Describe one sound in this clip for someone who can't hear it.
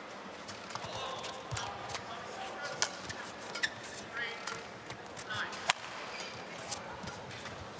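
A shuttlecock is struck sharply back and forth by rackets in a large hall.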